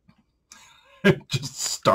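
A middle-aged man chuckles.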